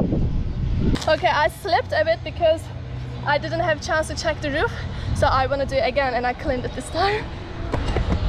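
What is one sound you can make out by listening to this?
A young woman talks casually and cheerfully close to the microphone.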